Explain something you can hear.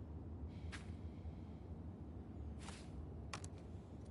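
Paper rustles as a card is handled and flipped.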